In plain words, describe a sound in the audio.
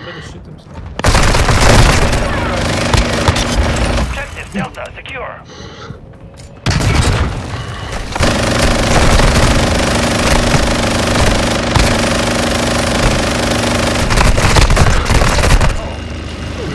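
A minigun spins and fires rapid bursts in loud rattling roars.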